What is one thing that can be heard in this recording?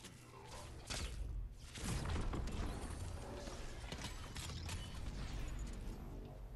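Ice shatters with a loud, crackling burst.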